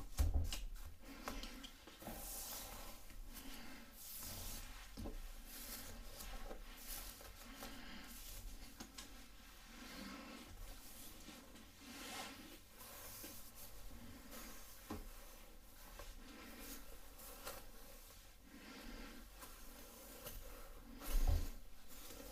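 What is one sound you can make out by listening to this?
A woman speaks softly and calmly close to the microphone.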